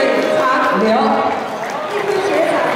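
A woman speaks through a microphone over a loudspeaker in a large hall.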